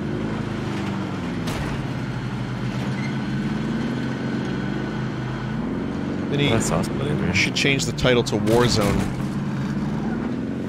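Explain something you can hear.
A vehicle engine hums steadily as it drives along.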